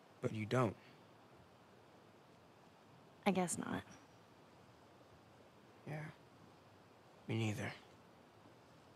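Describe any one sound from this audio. A teenage boy speaks in a low, hesitant voice.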